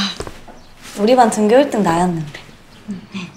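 A second young woman answers cheerfully nearby.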